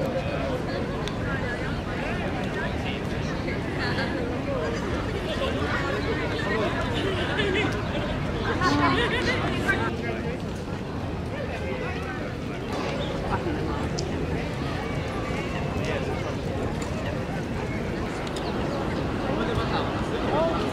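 Waterfowl honk and call by the water.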